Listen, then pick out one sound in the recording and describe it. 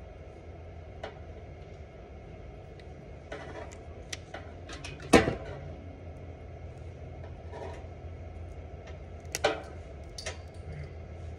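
A cable stripping tool clicks and snaps sharply a few times.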